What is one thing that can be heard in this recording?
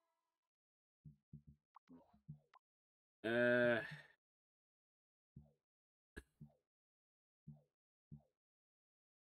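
Short menu clicks tick repeatedly.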